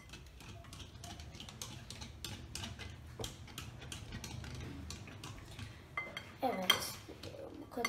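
A whisk beats eggs in a bowl.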